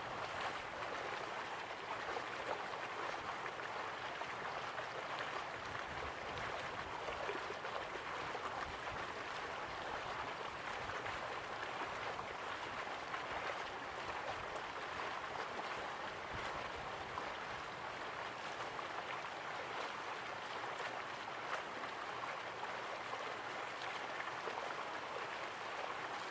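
Water rushes steadily down a waterfall in the distance.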